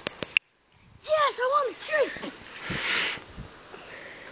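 A young boy shouts and laughs close by.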